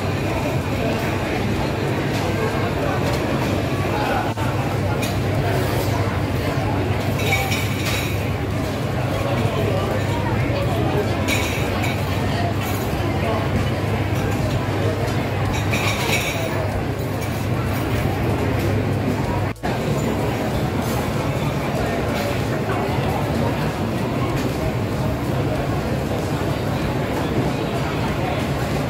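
A crowd of people chatters in a busy, echoing hall.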